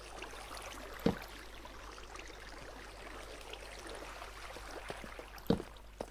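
Water trickles and gurgles nearby.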